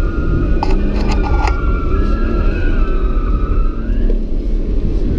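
Tyres squeal on pavement as a car turns hard.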